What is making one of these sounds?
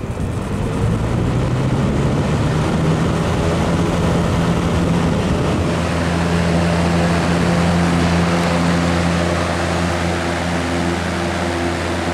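A box fan whirs and hums steadily up close.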